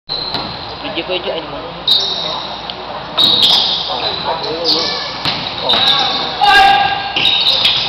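A basketball bounces with dull thumps on the court.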